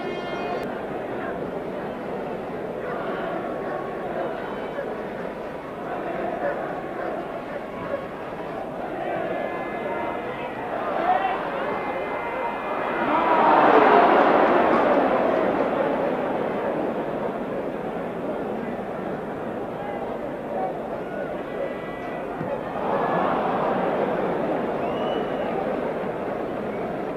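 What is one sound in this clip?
A large stadium crowd roars, swelling loudly for a moment and then settling.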